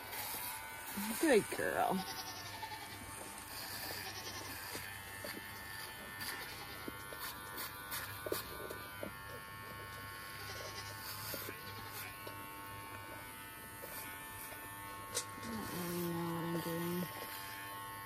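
A goat bleats loudly nearby.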